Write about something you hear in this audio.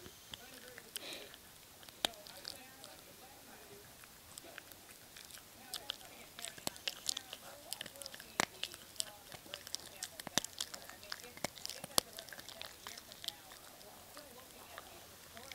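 A small dog chews and gnaws noisily up close, with wet clicking bites.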